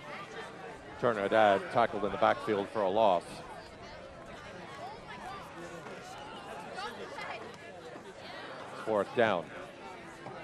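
Spectators shout and cheer from the stands outdoors.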